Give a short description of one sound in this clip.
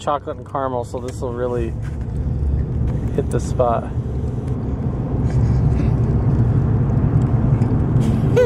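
A car's engine and road noise rumble low and steady.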